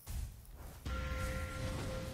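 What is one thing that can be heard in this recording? A magic spell bursts with a fiery blast.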